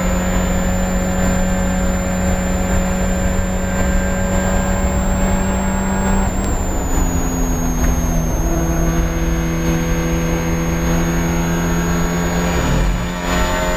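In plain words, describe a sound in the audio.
A four-cylinder Spec Miata race car engine drones at high revs, heard from inside the cabin.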